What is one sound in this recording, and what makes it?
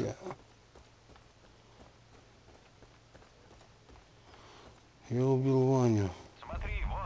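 Footsteps crunch steadily on a gravel road.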